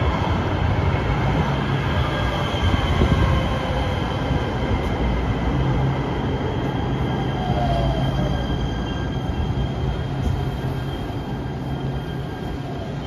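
A light rail train hums steadily while standing at the platform.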